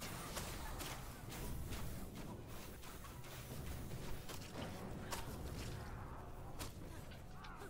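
Spell blasts and explosions crackle and boom in rapid bursts.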